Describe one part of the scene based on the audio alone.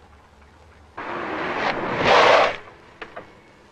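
A car rushes past close by.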